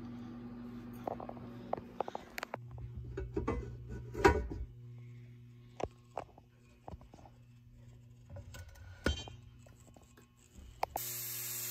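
Metal pans clank and knock against each other.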